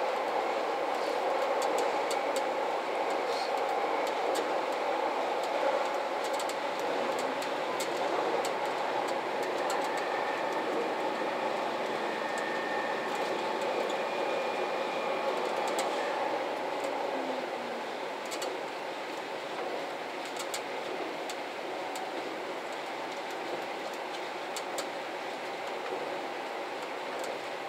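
A diesel express train runs at speed, its engine droning from inside the cab.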